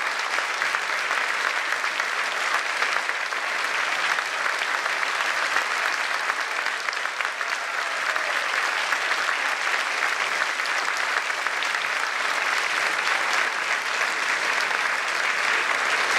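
An audience claps loudly in a large hall.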